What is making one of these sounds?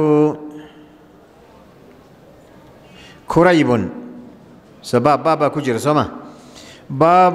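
An elderly man speaks slowly and calmly into a microphone, with pauses.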